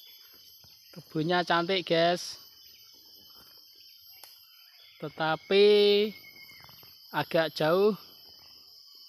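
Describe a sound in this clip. A rooster crows loudly nearby, several times.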